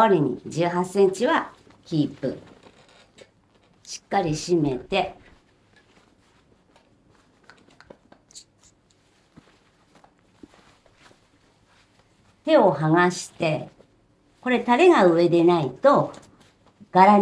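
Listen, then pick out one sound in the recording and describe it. Silk fabric rustles as it is pulled and folded.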